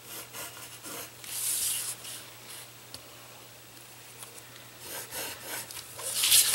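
A pencil scratches along paper in short strokes.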